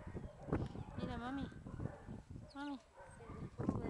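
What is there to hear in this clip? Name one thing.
A dog whines in high, bending yelps.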